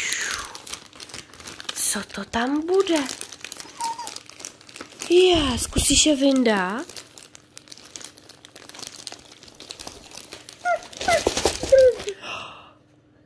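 Plastic wrapping rustles and crinkles close by.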